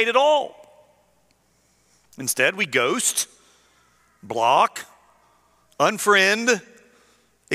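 A middle-aged man speaks with emphasis in short bursts through a microphone, in a reverberant hall.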